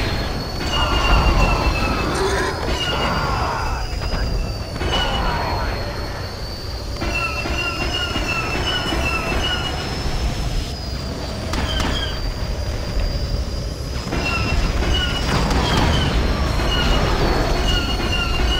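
Explosions boom and crackle nearby.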